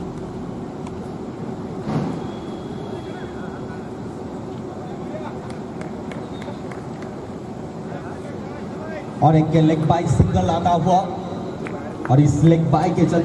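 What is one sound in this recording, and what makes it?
A crowd murmurs steadily outdoors.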